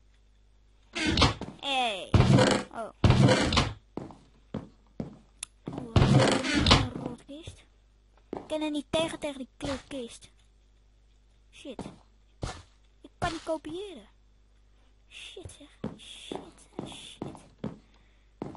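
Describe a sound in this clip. A young person talks with animation close to a microphone.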